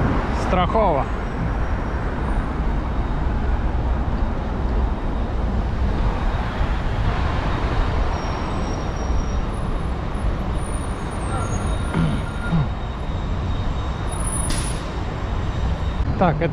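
City traffic rumbles steadily along a busy street outdoors.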